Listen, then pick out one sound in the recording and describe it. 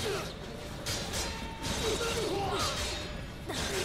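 Blades swish through the air.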